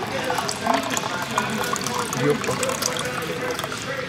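Tea pours from a dispenser tap into a cup.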